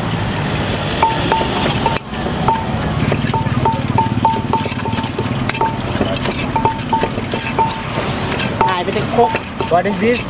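A wooden pestle pounds in a clay mortar.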